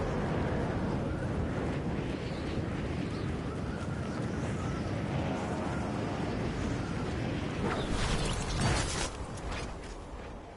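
Wind rushes loudly during a fast fall through the air.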